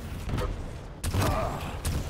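An explosion bursts loudly.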